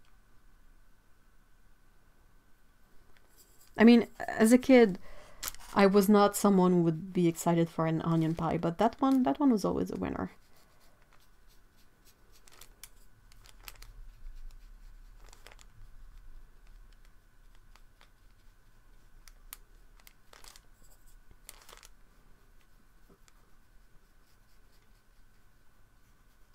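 A paintbrush strokes softly on paper.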